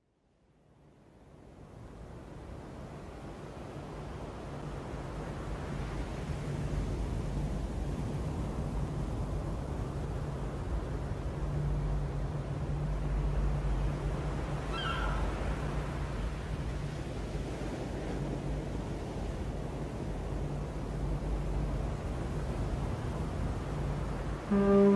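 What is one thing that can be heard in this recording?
Waves crash and churn on a rocky islet.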